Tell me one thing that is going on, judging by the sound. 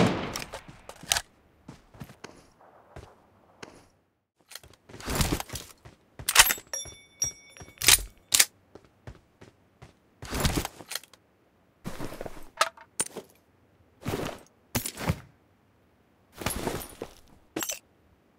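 Footsteps thud and scrape on hard ground in short bursts.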